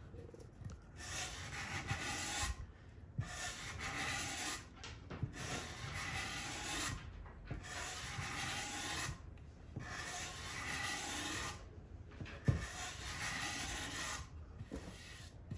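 A sanding block scrapes back and forth over wood in rhythmic strokes.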